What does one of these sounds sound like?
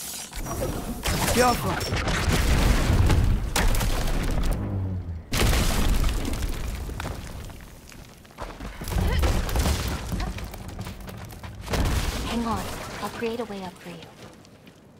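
A wooden cage crashes down and splinters.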